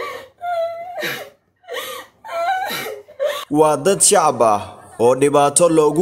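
A woman sobs and cries close by.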